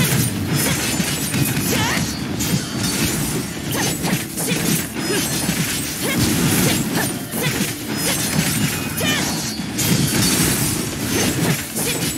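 Explosions burst and crackle with sharp zaps.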